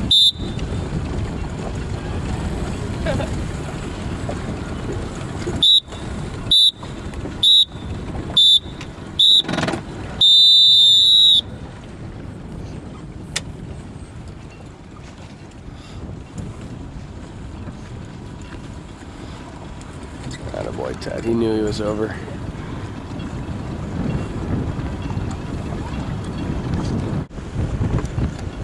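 Wind blusters outdoors with a low, steady rumble.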